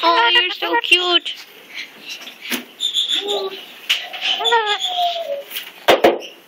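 A cockatoo squawks and chatters loudly, close by, in short bursts.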